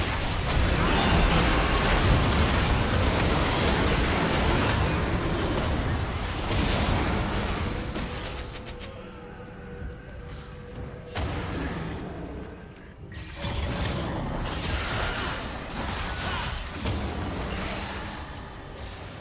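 Magic spells whoosh and crackle in a busy video game battle.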